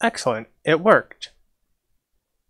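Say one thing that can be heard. A young man speaks briefly into a microphone close by.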